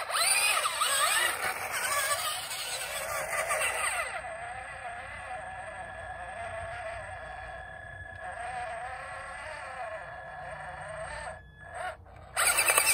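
A small electric motor whines and revs up and down.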